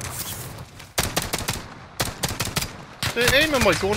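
A pistol fires sharp shots in quick succession.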